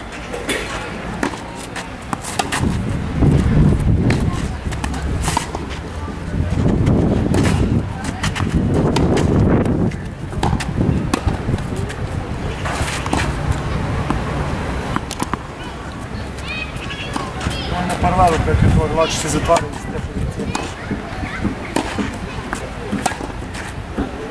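Tennis balls are struck with rackets, with sharp pops outdoors.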